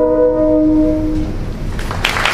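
A band holds a final chord and stops.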